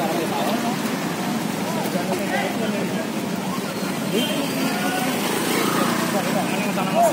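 A crowd of men shout and talk excitedly nearby outdoors.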